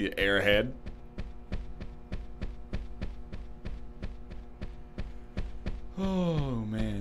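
Quick footsteps run across a floor.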